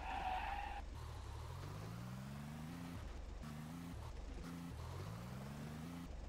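A car engine revs up again and again, rising in pitch each time.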